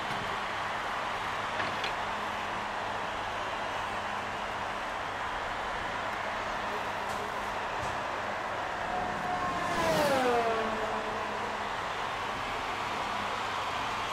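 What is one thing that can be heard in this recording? A racing car engine idles steadily close by.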